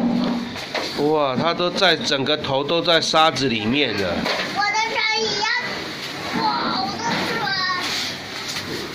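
A young child babbles and chatters close by.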